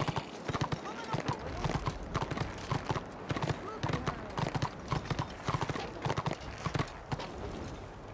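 A horse gallops with quick, steady hoofbeats, then stops.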